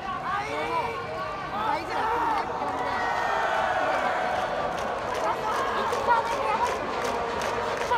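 Young men shout and chant loudly across a large open ballpark.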